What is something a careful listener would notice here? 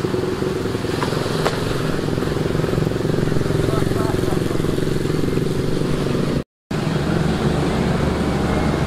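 A motorcycle engine buzzes and revs steadily nearby.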